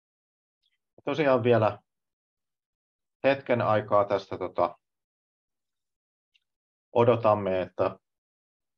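A man speaks calmly over an online call, in short phrases.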